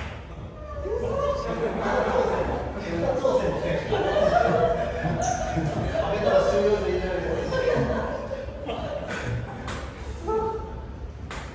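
Men talk and laugh with animation nearby.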